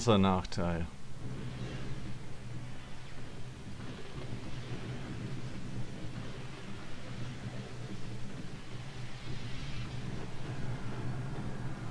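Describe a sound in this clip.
Electric magic crackles and rumbles loudly.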